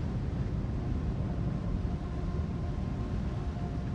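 A magical portal hums with a deep, steady rumble.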